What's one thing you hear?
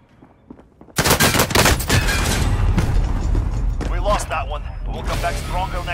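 Gunfire rattles loudly at close range.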